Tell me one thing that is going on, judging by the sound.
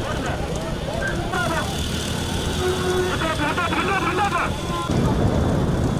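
Cart wheels rattle along a road.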